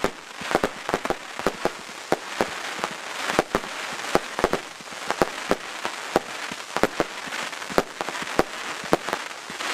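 Fireworks bang and crackle in rapid bursts outdoors.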